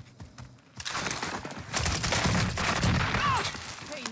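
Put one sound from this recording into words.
Rapid gunshots fire in a video game.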